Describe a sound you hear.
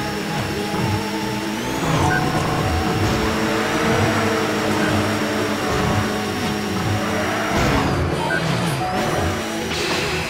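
A racing car engine roars at high speed, rising and falling in pitch as it shifts.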